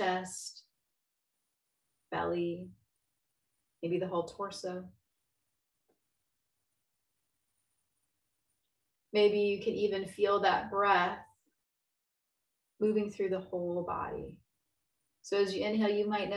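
A woman speaks calmly and slowly, with long pauses, close to a microphone.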